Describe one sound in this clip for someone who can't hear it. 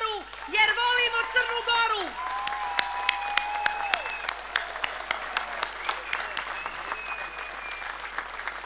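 A large crowd claps and applauds.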